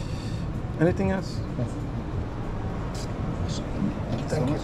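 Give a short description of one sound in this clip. Metal tongs clink against serving dishes.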